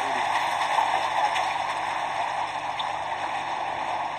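Fish splash and thrash at the water's surface.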